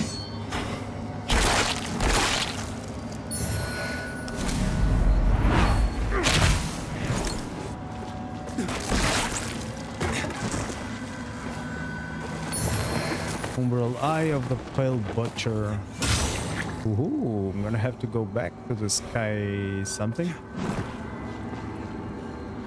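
A blade strikes with sharp, heavy impacts.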